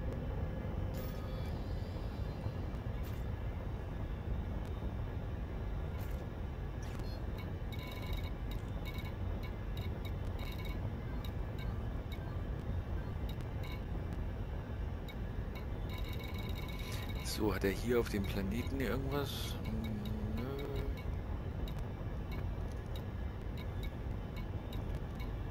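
Short electronic clicks and beeps sound as menu items are selected.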